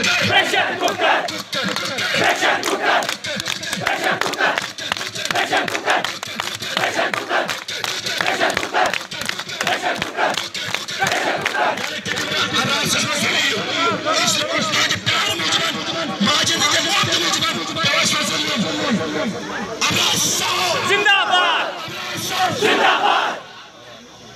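A young man shouts slogans through a loudspeaker.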